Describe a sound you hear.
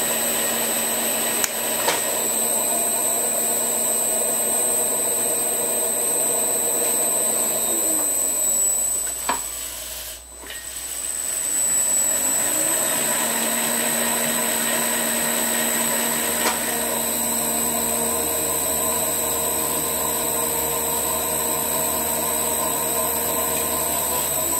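A lathe motor whirs steadily, briefly winding down to a stop and then speeding up again.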